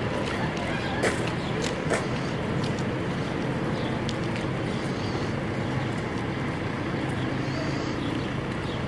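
A crowd of young people chatters outdoors.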